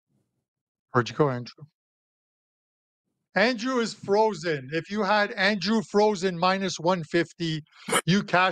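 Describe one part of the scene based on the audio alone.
A middle-aged man talks with animation into a microphone, heard as over an online call.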